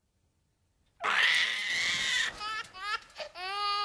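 A young man shouts.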